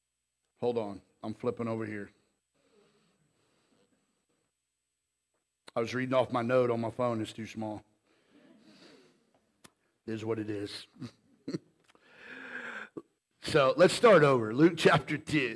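A man speaks into a microphone in measured bursts, with pauses in between.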